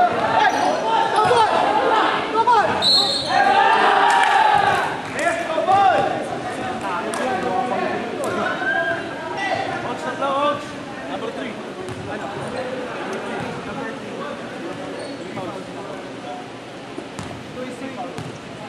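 Young players shout and call out to each other across the hall.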